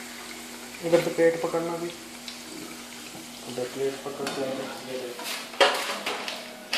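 A metal spatula scrapes and clinks against a frying pan.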